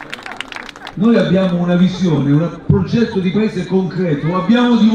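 A man speaks loudly and with animation into a microphone over loudspeakers.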